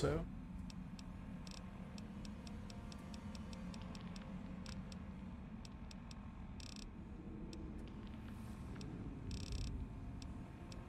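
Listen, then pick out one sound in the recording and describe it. Soft electronic menu clicks tick in quick succession.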